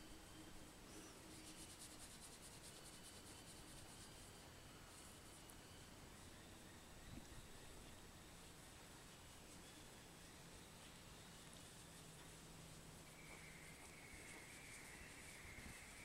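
A hand rubs and scratches an animal's fur close by.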